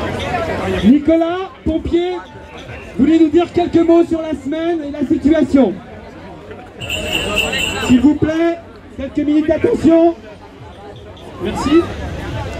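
A man speaks loudly through a megaphone to a crowd.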